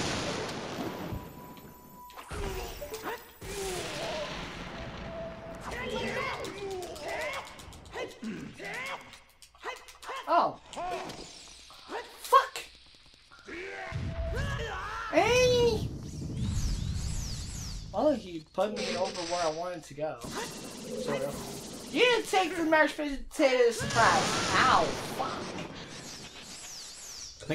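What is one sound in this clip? Magic energy blasts zap and crackle.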